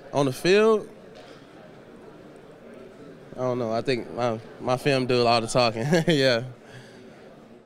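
A young man speaks calmly into a microphone, in short bursts.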